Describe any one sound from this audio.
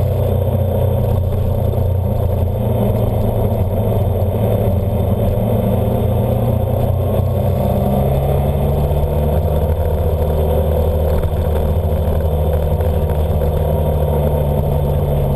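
A motorcycle engine hums steadily close by as it rides.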